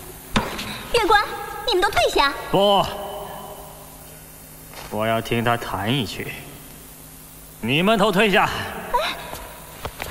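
A man speaks firmly and commandingly, close by.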